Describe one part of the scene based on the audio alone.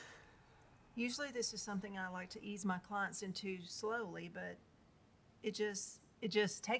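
A woman talks calmly in a quiet room.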